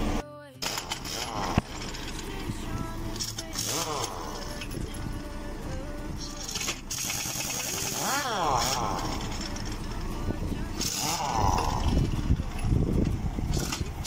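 An impact wrench rattles in short bursts, loosening wheel nuts.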